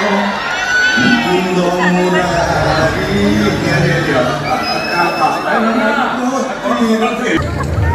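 A crowd of young men cheers and shouts excitedly.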